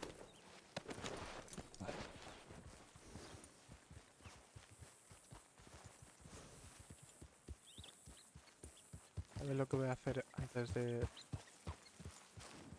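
A horse's hooves thud steadily on grass.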